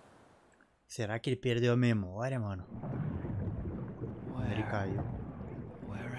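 A young man talks calmly and close up into a microphone.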